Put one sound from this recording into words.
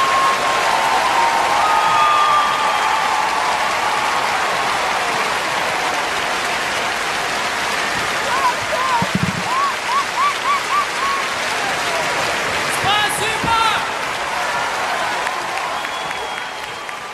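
A large crowd applauds and cheers throughout.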